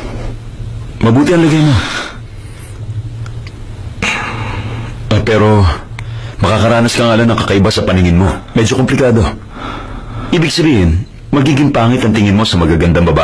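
A man speaks calmly nearby.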